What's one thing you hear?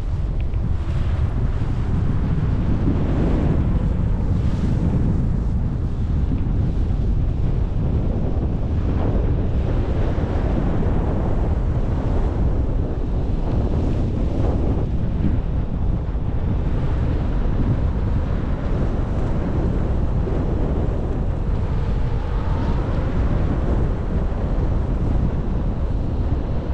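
Strong wind rushes and buffets loudly, outdoors.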